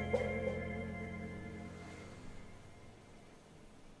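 A band's final chord rings out and fades away.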